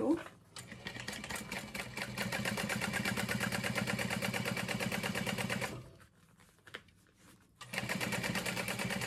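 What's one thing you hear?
A sewing machine runs with a fast, steady rattle.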